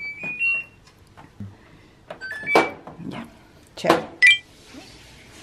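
A washing machine beeps as its buttons are pressed.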